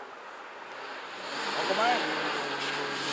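A car engine approaches from a distance.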